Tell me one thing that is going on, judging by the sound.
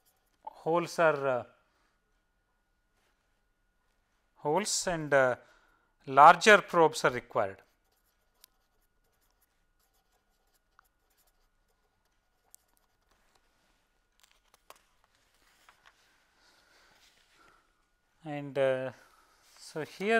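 A man speaks calmly through a close microphone, in short phrases with pauses.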